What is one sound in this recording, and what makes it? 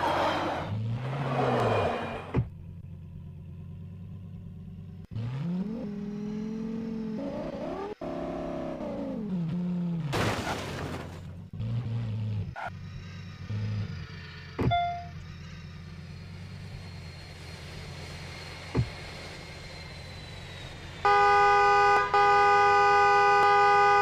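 A sports car engine hums and revs up and down.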